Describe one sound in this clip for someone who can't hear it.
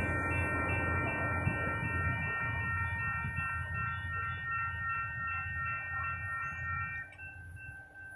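A train horn blares in long, steady tones.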